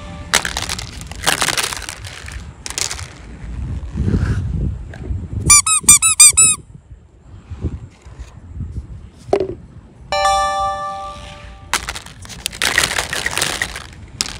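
Plastic eggs clatter against each other in a plastic basket.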